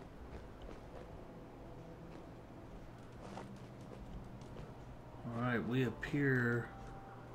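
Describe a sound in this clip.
Footsteps crunch softly on rubble.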